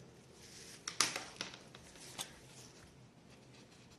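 A marker squeaks across paper.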